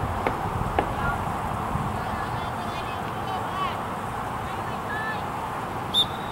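Players call out to each other across an open field in the distance.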